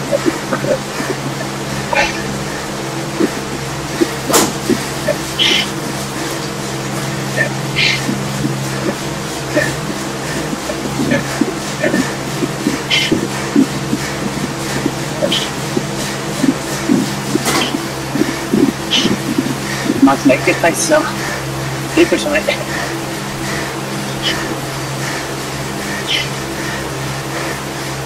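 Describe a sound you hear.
A bike trainer whirs steadily.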